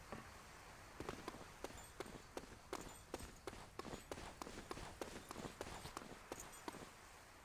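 Running footsteps thump quickly on a hard surface.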